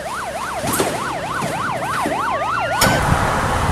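A car's boot lid slams shut.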